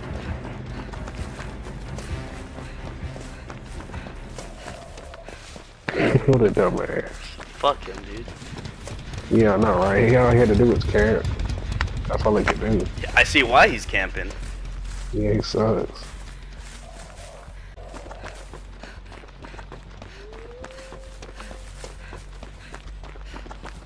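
Footsteps run through grass and dry leaves.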